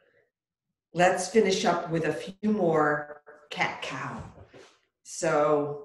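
An older woman speaks calmly and clearly, close to the microphone.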